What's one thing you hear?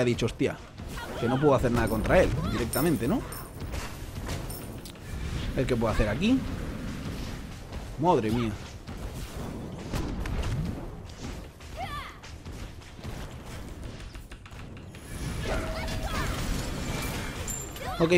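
Game spells whoosh and blast with fiery bursts.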